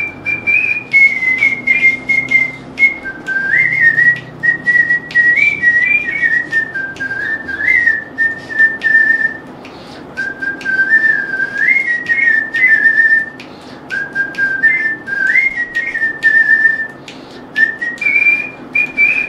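A flute plays a slow melody close by.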